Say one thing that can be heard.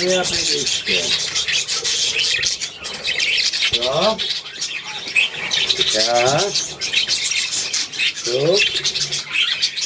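Many small birds chirp and twitter busily close by.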